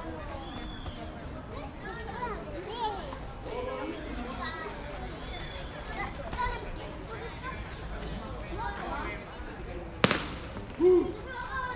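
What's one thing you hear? Ballplayers chatter and call out across an open field.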